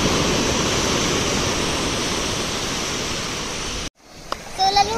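Waves crash and wash onto the shore.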